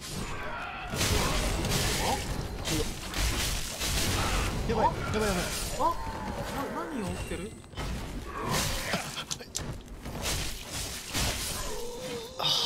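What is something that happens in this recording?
Swords clash and strike in a fierce fight.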